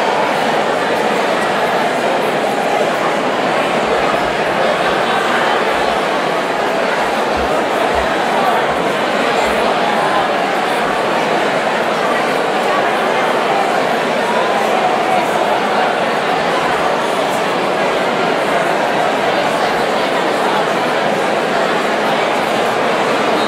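A large crowd of men and women chatters loudly all around in a big echoing hall.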